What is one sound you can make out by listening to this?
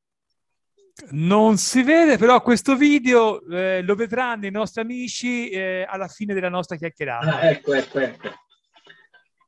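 A middle-aged man speaks with animation into a microphone, heard over an online call.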